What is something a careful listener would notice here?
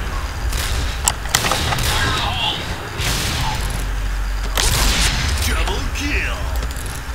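A rifle bolt clacks as it is worked.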